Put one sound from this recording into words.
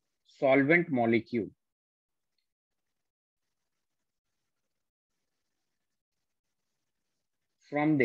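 A man speaks calmly into a close microphone, explaining in short phrases with long pauses.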